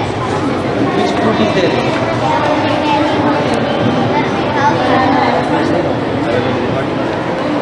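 A young boy speaks close by, explaining with animation.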